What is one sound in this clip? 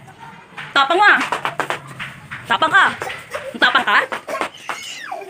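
A small child shouts and squeals excitedly close by.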